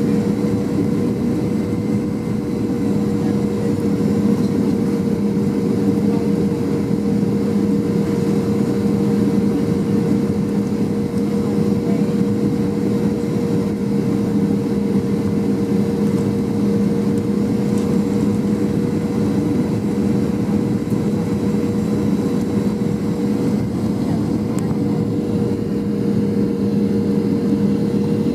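Air rushes loudly past the aircraft.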